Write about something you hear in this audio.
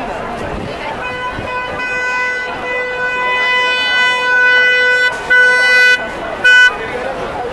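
A car horn blares long and loud.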